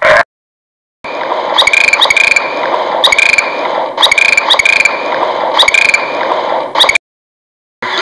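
Dolphins splash as they leap out of the water.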